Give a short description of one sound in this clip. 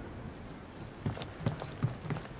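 Heavy armored footsteps thud on wooden boards.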